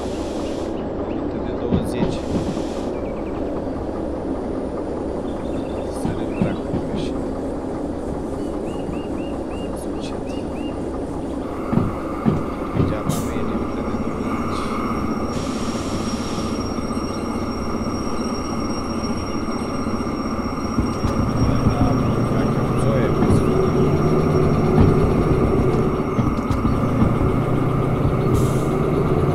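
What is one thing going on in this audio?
A diesel locomotive engine rumbles steadily.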